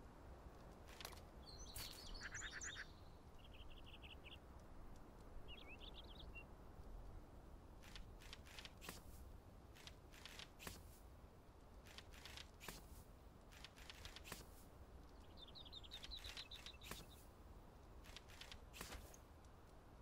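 Short soft clicks of a game menu tick now and then.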